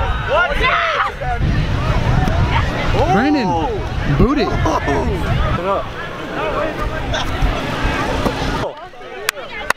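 Children shout and cheer outdoors in wind.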